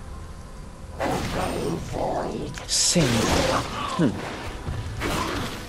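Magic spells whoosh and crackle in quick bursts.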